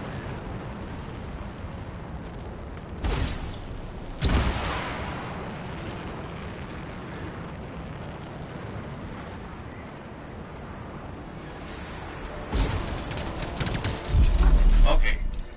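A jet thruster roars steadily.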